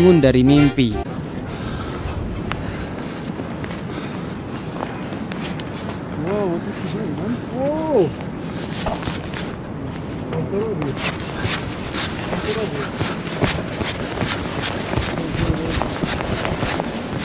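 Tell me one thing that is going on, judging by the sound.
Wind blows hard across the microphone high outdoors.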